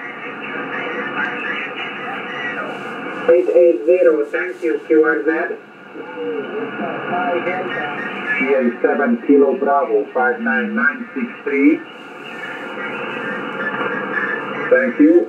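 Static hisses steadily from a radio loudspeaker.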